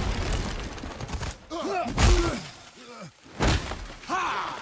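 Heavy blows land with loud thuds in a fight.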